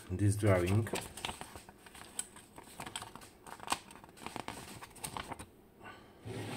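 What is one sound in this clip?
Paper rustles and crinkles close by as it is handled.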